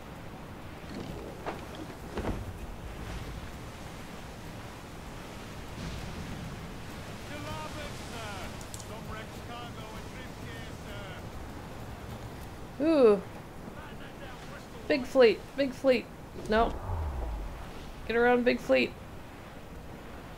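Waves wash and splash against a sailing ship's hull.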